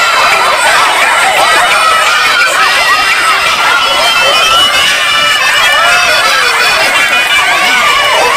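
A crowd of young people laughs and cheers.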